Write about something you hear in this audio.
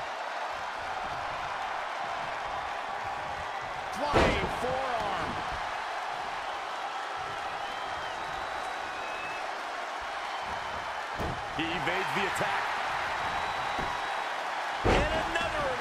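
A large crowd murmurs and cheers throughout.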